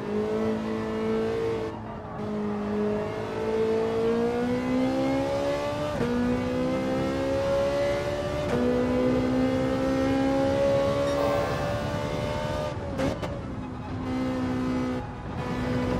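A racing car engine roars steadily, rising in pitch as it accelerates through the gears.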